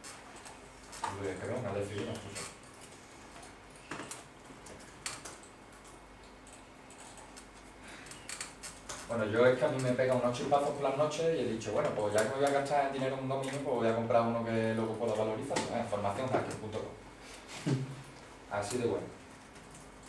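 A man speaks calmly in a room, heard from across it.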